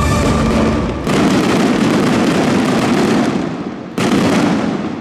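Fireworks explode with loud, echoing booms.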